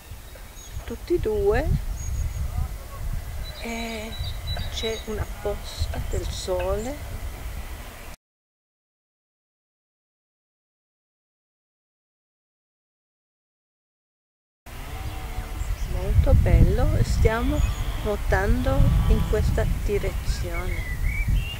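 An older woman talks with animation close by.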